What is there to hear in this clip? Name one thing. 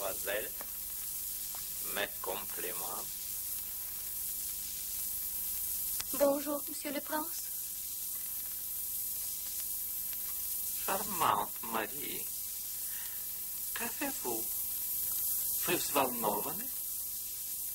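A man speaks in short, earnest bursts close by.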